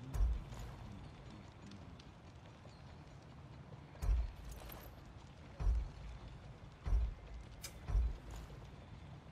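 Game menu sounds give short low thuds as selections change.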